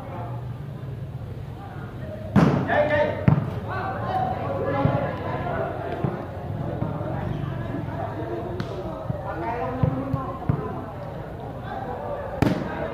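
A crowd of spectators chatters.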